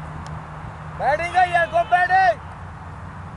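A man shouts loudly outdoors.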